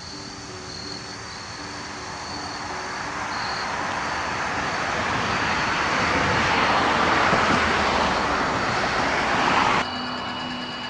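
A fog machine hisses loudly, growing louder.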